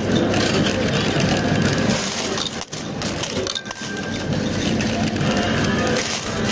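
A coin pusher's shelf slides back and forth, pushing coins that clink and rattle.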